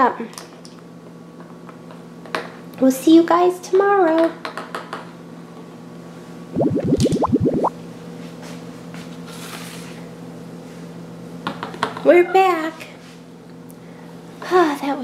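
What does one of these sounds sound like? Small plastic toys click and tap against a hard surface.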